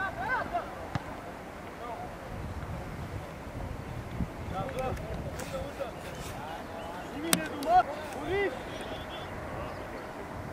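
Teenage boys shout to each other across an open football pitch.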